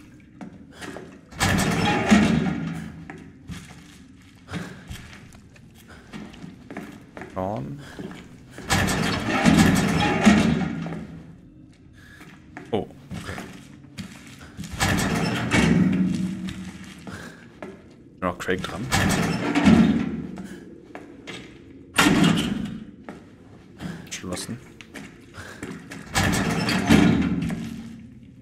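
A man talks quietly into a close microphone.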